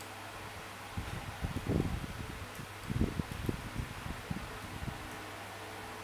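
Fingertips tap and swipe softly on a touchscreen.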